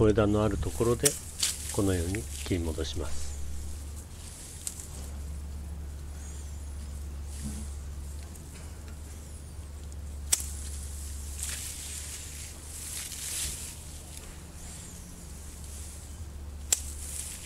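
Leafy branches rustle as they are handled.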